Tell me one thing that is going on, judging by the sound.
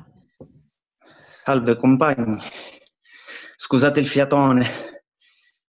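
A second man speaks with animation over an online call.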